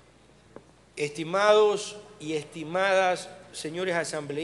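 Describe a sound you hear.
A middle-aged man speaks formally into a microphone in a large hall.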